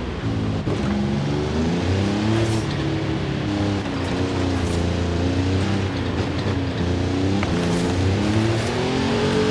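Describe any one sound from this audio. A car engine revs hard, rising and falling as the gears change.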